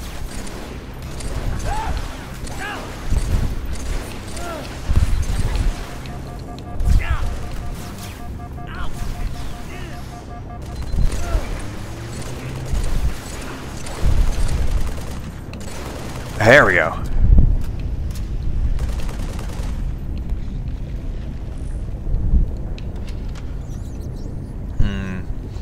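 Gunfire from a video game rattles in bursts.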